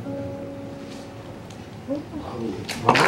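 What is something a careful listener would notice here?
A guitar note rings softly.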